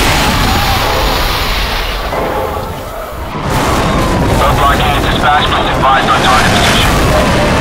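A helicopter's rotor thumps overhead.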